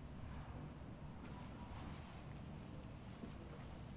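A sheet rustles as it is spread and smoothed.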